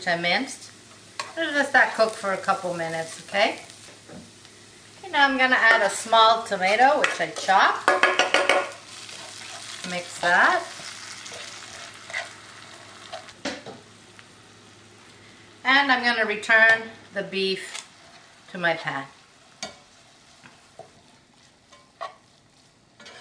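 A spatula scrapes and stirs food in a frying pan.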